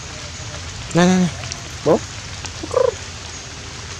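A young monkey gives short, high squealing calls.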